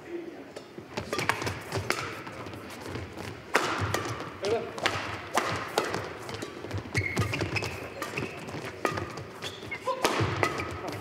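Shuttlecocks are struck sharply by rackets in quick rallies.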